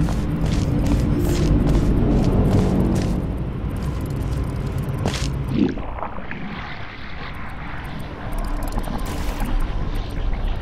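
An energy bridge hums steadily.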